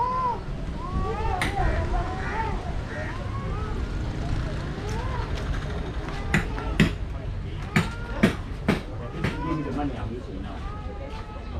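Men and a woman talk nearby outdoors.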